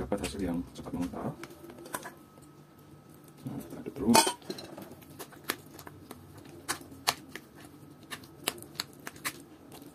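A metal spoon clinks and scrapes against a bowl while stirring.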